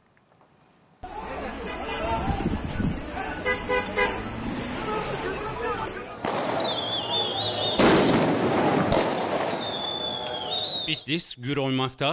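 A crowd shouts and clamours outdoors at night.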